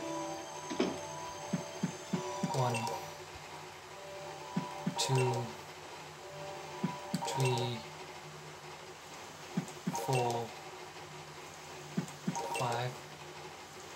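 Cheerful video game music with short bouncy notes plays from a television speaker, repeating every few seconds.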